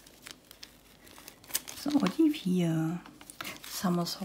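A plastic bag crinkles between fingers.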